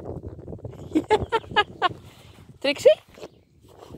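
A young dog yelps in short, sharp bursts.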